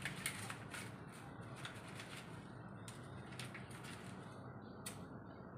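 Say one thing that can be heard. Paper crinkles and rustles in someone's hands.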